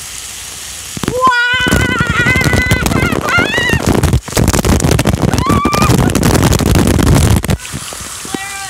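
A water jet gushes up close and splashes loudly.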